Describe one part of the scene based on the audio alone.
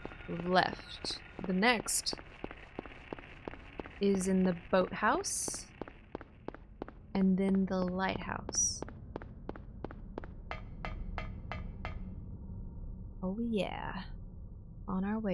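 A young woman talks close to a microphone, in short bursts.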